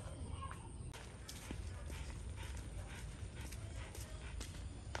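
Sandals slap on a concrete path with each step.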